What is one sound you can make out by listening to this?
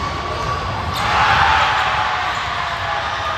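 A crowd cheers briefly.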